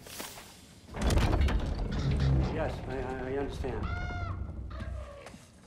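A heavy wooden door creaks and rumbles open.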